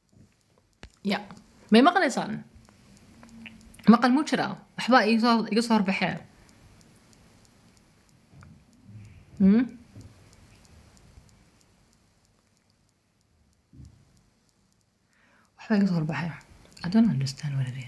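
A woman speaks close to a phone microphone, calmly, in short bursts with pauses.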